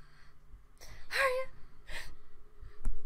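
A young woman laughs softly close to a microphone.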